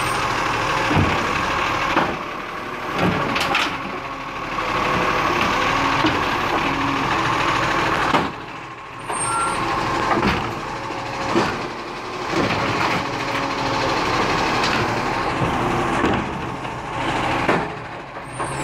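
Bins bang and clatter against the truck.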